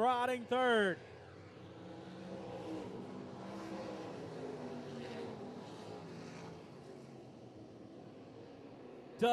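Several race car engines rumble steadily in the distance.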